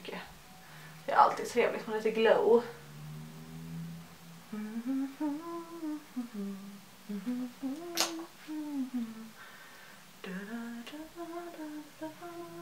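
A young woman talks calmly close to a microphone.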